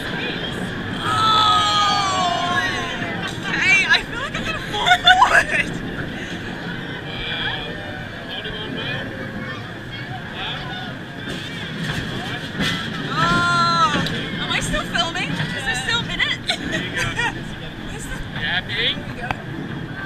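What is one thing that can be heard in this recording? A crowd of children and adults squeals and cries out excitedly nearby.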